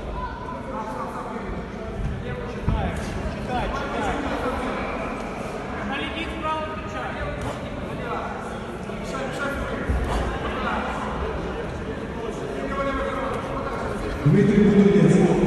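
Men shout and call out in an echoing hall.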